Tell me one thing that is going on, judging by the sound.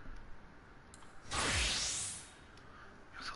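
A shimmering magical chime swells and fades.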